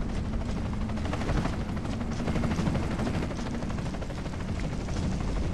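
Heavy armoured boots tread on stone.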